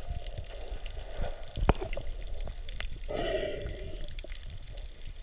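Water sloshes and splashes, heard muffled from underwater, as a person wades through it.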